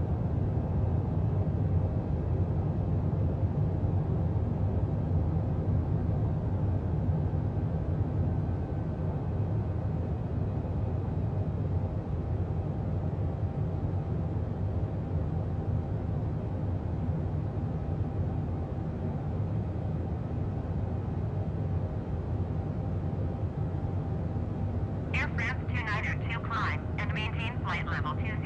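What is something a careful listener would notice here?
A jet engine roars steadily in flight.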